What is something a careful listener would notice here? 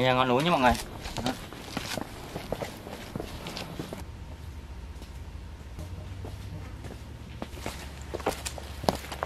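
Footsteps scuff on a stone path.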